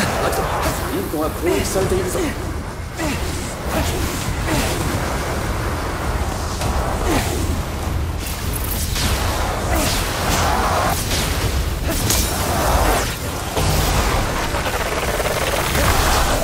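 Crackling magic blasts burst again and again.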